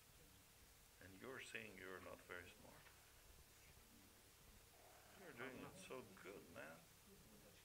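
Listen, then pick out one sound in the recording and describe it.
An elderly man speaks calmly, with long pauses.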